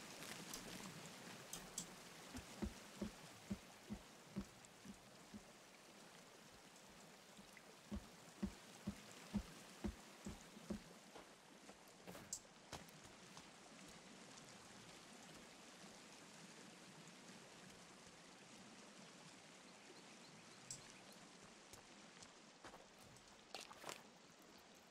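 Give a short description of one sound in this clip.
Wind blows steadily through a snowstorm.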